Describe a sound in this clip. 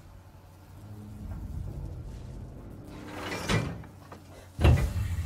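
Metal creaks and grinds as a bar pries at a heavy brace.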